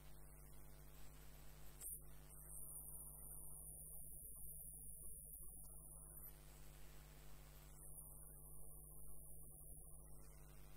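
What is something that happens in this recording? A wood lathe hums as it spins.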